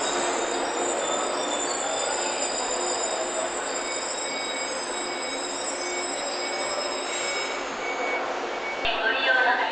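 A train rolls slowly in and comes to a halt.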